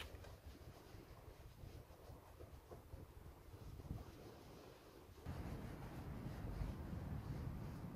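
A cloth rubs against a headlight.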